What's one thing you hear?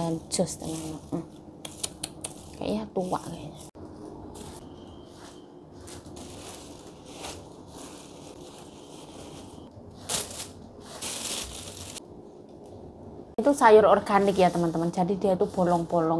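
Leafy greens rustle as hands shuffle through them.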